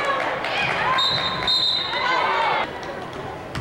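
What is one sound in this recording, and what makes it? A referee's whistle blows.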